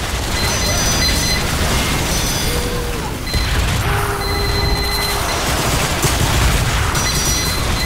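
Video game gunfire and blasts crackle throughout.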